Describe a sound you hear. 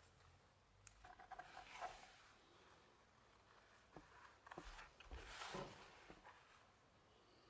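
Scissors snip through thick leather.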